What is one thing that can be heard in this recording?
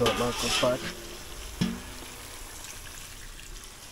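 Liquid pours from a bowl into a pot.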